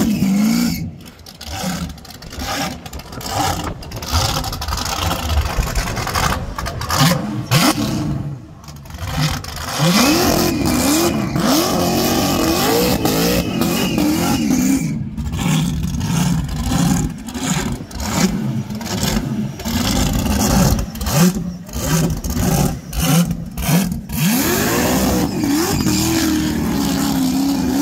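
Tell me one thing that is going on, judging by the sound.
A loud car engine revs hard, rising and falling in pitch.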